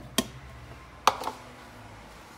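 A plastic bowl is set down on a wooden counter with a knock.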